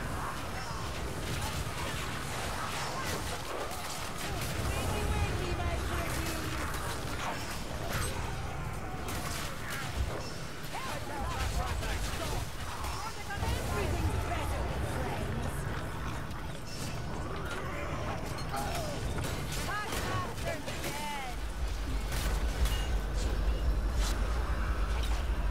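Weapon blows crack and thud against skeletons in a game's melee fight.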